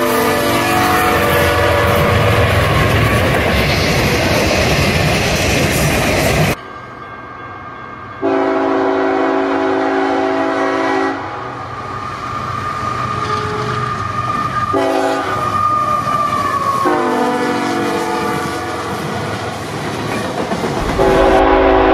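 A freight train rumbles and clatters past close by.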